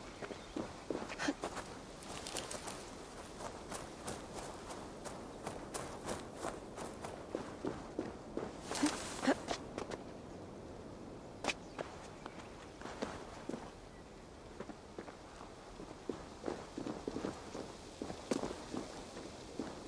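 Footsteps crunch over dry leaves and rocky ground.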